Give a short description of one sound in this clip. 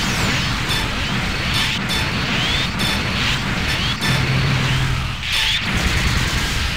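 Synthetic impact and blast effects ring out as two giant robots clash in a video game.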